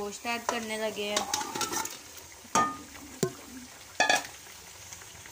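Pieces of meat tumble into a pot with soft thuds.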